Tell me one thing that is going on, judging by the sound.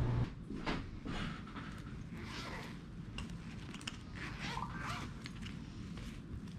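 A fabric pet carrier rustles and its zipper rasps.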